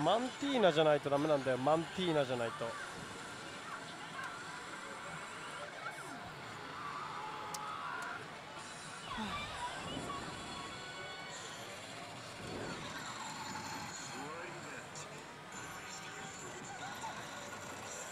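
A slot machine plays electronic music and sound effects.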